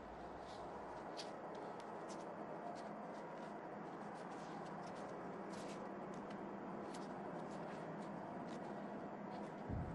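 Tape crinkles softly as it is wrapped around a hand.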